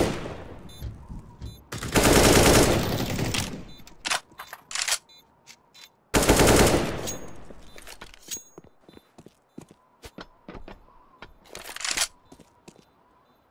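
Quick footsteps clatter on hard floors.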